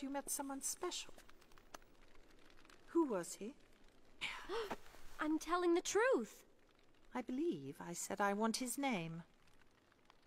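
An older woman speaks coldly and slowly.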